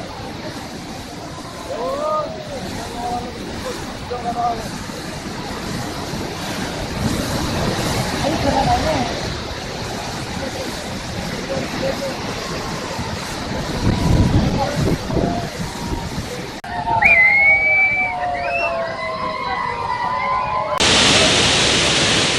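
Water roars as it rushes through a dam's gates.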